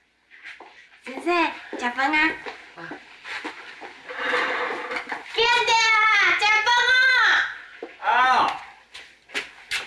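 A young woman calls out loudly indoors.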